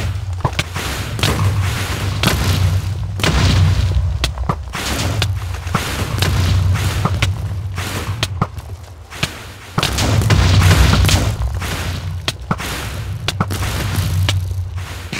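Explosions boom and rumble repeatedly.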